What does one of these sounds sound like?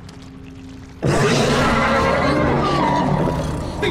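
A young man screams loudly in fright.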